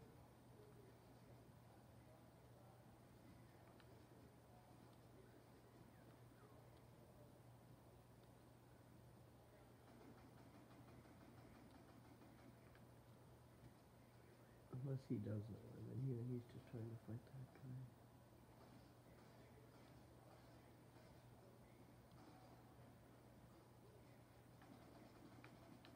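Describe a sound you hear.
Video game sounds play quietly through a television.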